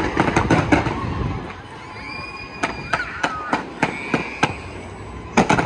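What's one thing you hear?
Fireworks burst and crackle in rapid pops outdoors.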